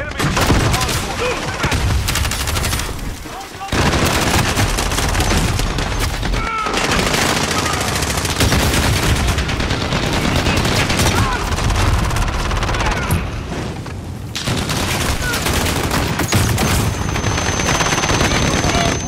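Rapid gunfire rattles close by.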